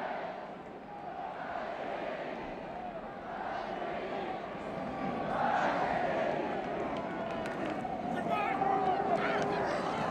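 A large stadium crowd cheers and roars, growing louder.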